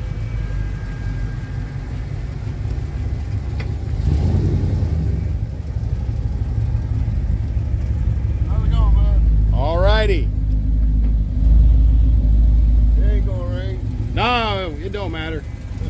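A classic car's engine rumbles deeply as the car drives slowly past.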